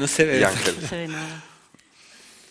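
A man speaks briefly into a microphone in a large room.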